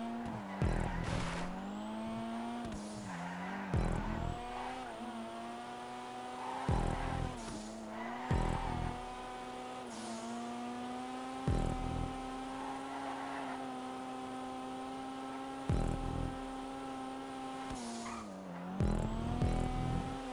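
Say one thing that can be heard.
A car engine revs high and steady, its pitch dipping and climbing with gear shifts.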